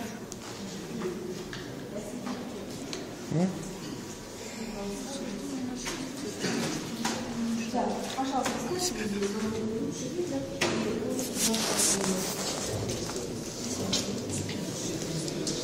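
Several adults talk at once in a room.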